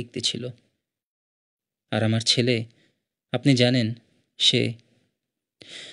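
A man speaks urgently in short bursts, close by.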